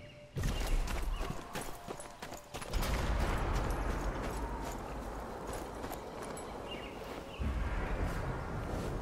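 Footsteps crunch softly through grass.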